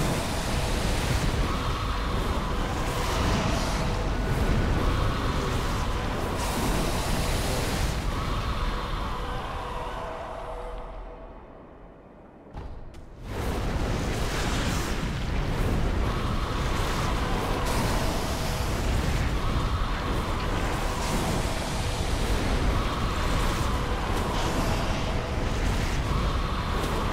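A strong wind howls through a snowstorm.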